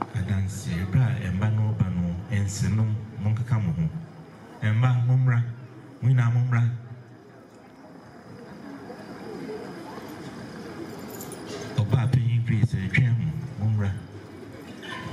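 A man speaks forcefully into a microphone, heard through loudspeakers outdoors.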